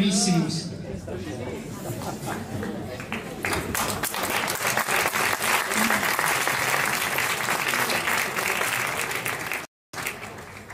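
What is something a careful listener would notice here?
An audience claps and applauds steadily.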